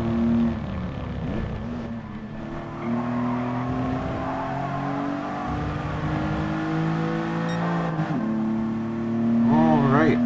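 A car engine revs high, rising and dropping as it shifts gears.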